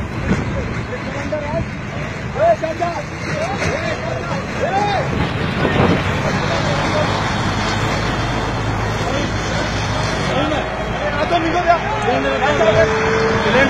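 A man speaks loudly and excitedly close by.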